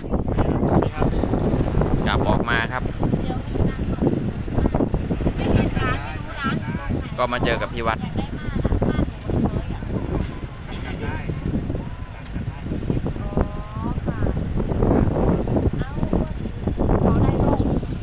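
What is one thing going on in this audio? Several women and a man talk nearby with animation, outdoors.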